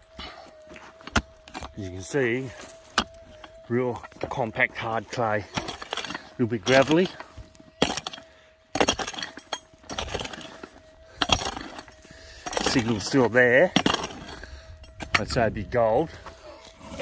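A hoe chops and scrapes into dry, crumbly soil.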